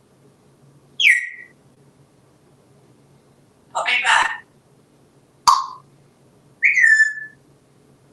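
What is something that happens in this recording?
A parrot whistles with a falling note.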